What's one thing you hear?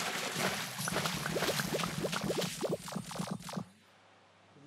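Game candies pop and chime in quick bursts.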